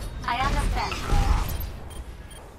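A futuristic gun fires with loud bursting blasts.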